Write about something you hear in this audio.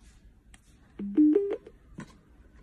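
A small speaker plays a short rising electronic chime.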